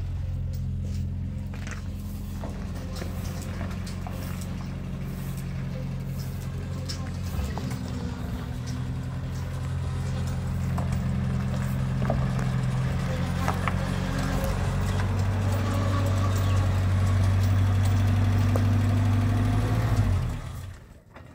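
A pickup truck's engine runs with a steady low hum and then stops.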